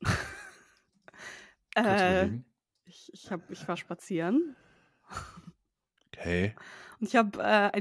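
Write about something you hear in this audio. A woman laughs over an online call.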